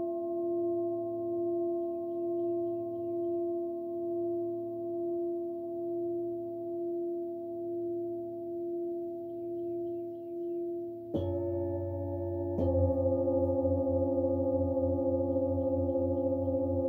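Singing bowls ring with a steady, slowly pulsing hum.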